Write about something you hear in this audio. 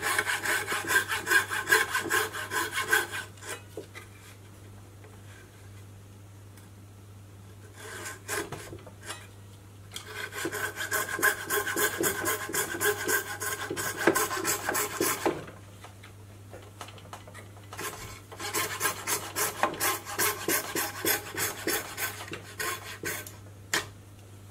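A small hand saw rasps back and forth through wood in quick strokes.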